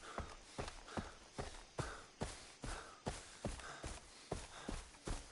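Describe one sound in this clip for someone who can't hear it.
Footsteps thud steadily on a dirt path.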